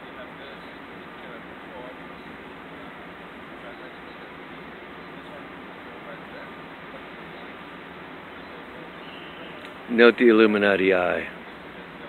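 Men talk quietly at a short distance.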